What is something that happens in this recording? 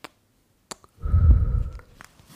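A young woman speaks aloud close to a microphone.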